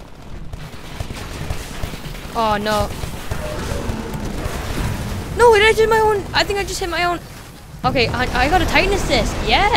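Explosions boom in a video game battle.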